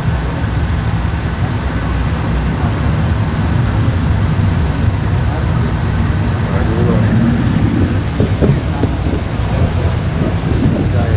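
A low rumble of city traffic fills the air outdoors at night.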